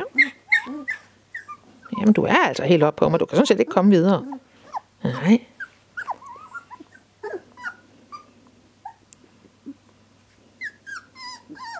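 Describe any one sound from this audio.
Puppies whimper and squeak in high little cries.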